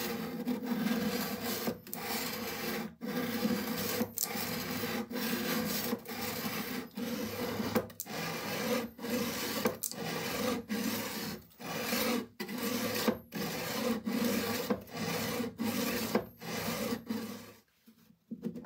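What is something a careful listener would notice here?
A knife blade scrapes in rhythmic strokes across a diamond sharpening plate.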